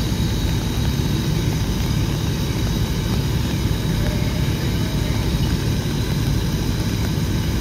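A fire truck engine rumbles steadily nearby.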